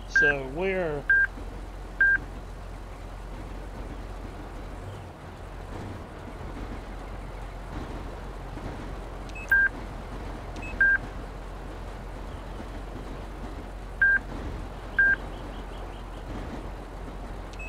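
A car engine idles steadily.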